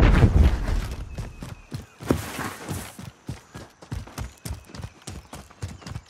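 Footsteps crunch quickly through dry grass.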